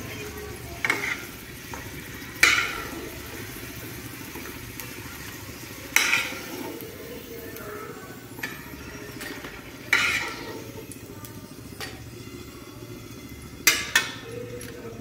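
A metal spatula scrapes and taps against a frying pan.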